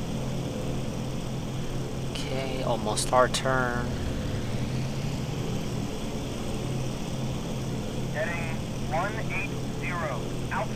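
Aircraft propeller engines drone steadily.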